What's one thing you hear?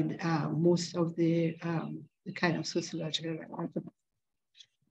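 An elderly woman speaks calmly over an online call.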